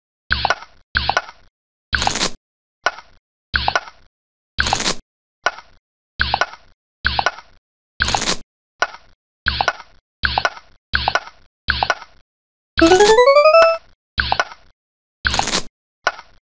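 Short electronic game blips sound each time a falling block moves or lands.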